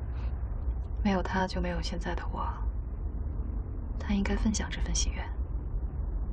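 A second young woman speaks softly and slowly, close by.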